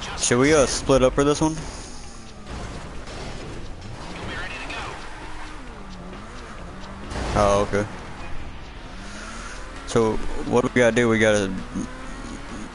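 A car engine hums and revs as a car drives along a road.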